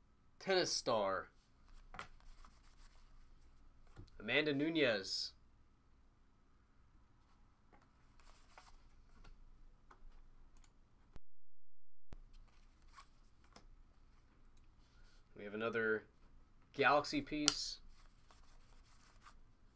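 Trading cards rustle and flick as hands sort through them.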